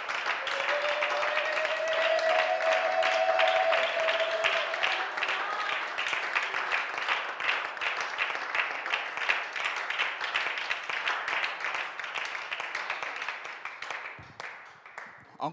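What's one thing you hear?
A group of people clap their hands steadily in an echoing hall.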